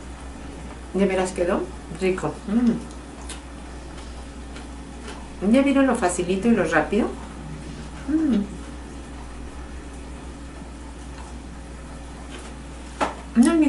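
An elderly woman speaks calmly and close by, in short phrases with pauses.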